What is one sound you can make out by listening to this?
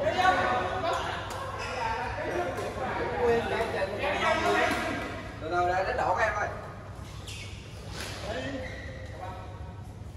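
Rackets hit a shuttlecock with light pops.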